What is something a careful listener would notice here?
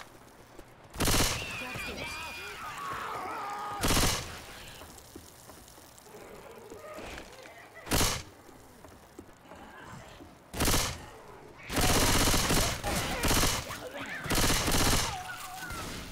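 Gunfire rattles in loud, short bursts.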